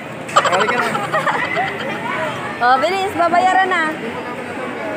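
A young child talks.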